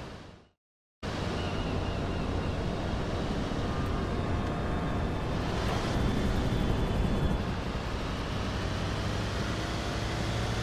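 A van engine hums steadily as it drives.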